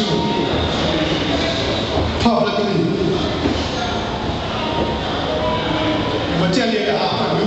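A crowd of people chatters and murmurs in a large echoing hall.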